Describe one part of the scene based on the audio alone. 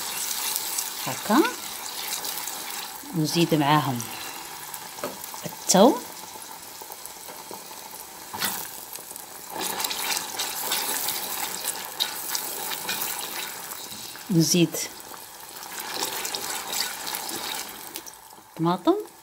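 Onions sizzle and crackle in hot oil in a pot.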